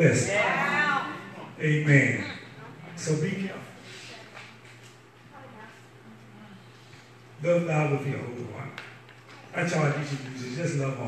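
A man speaks into a microphone with animation, heard through loudspeakers in an echoing hall, pausing between phrases.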